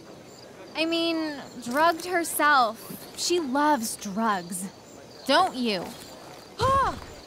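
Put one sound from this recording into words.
A young woman speaks mockingly, close by.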